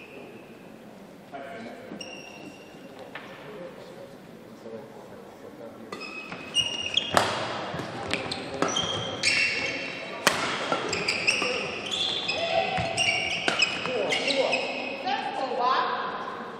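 Sports shoes squeak on the court floor.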